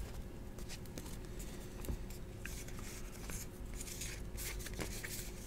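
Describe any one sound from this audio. Trading cards shuffle and slide against each other in a pair of hands, close up.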